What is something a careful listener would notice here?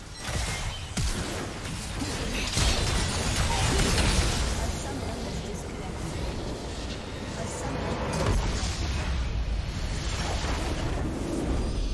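Fighting game sound effects crash, zap and whoosh in quick bursts.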